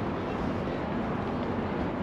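Footsteps tap on stone paving nearby.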